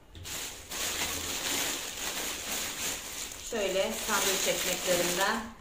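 A plastic wrapper rustles and crinkles close by.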